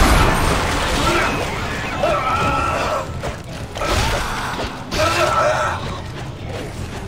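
A monster shrieks and snarls up close.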